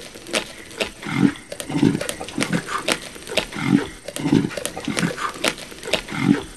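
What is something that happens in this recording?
Animals growl low and rumbling.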